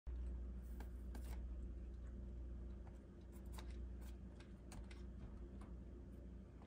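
Cats' paws patter and tap softly on a hard floor.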